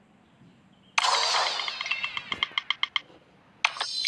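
A cheerful electronic jingle plays with bright chiming notes.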